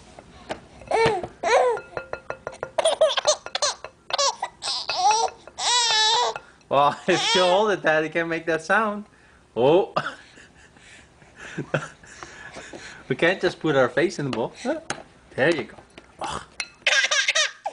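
A baby laughs and squeals with delight close by.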